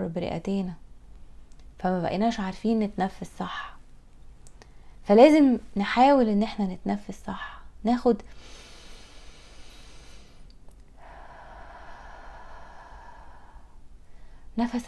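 A woman speaks calmly and clearly into a microphone.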